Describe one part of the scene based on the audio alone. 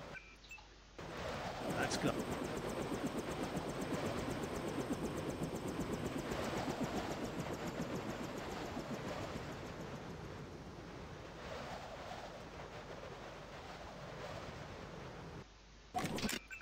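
A helicopter's rotor thumps and roars steadily.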